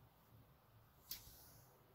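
A microwave oven door shuts with a click.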